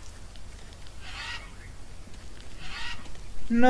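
Leaves rustle as they are brushed aside.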